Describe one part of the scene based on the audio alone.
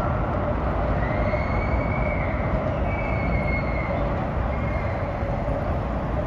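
Geese honk a few times nearby.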